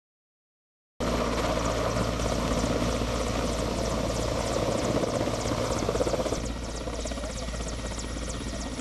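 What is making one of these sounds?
A helicopter's rotor thumps and its engine roars close by.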